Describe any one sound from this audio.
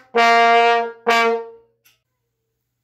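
A trombone plays two loud held notes close by.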